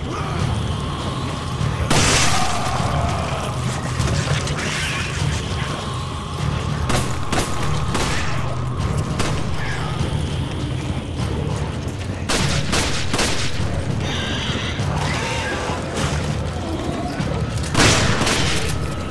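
A creature growls and snarls.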